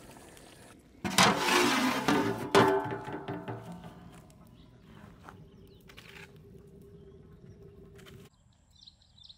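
A wood fire crackles under a pot.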